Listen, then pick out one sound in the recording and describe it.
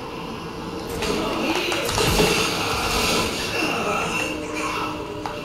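A man grunts and struggles in pain.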